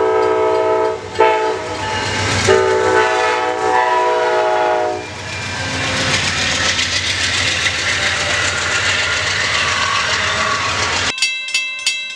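A passenger train rumbles past on the tracks.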